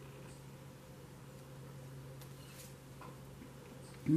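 A card slides softly onto a cloth-covered table.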